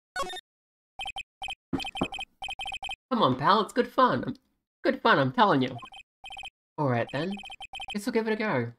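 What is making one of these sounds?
Short electronic blips chatter rapidly.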